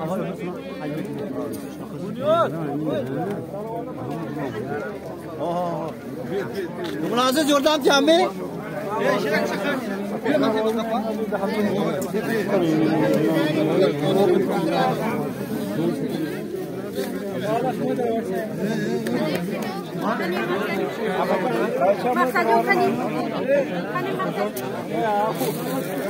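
A crowd of men talks loudly all around, close by.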